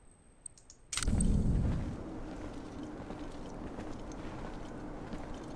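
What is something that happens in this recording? A low, rumbling ambience swells suddenly and carries on steadily.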